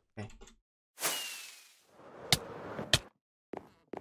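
A firework rocket launches with a whoosh.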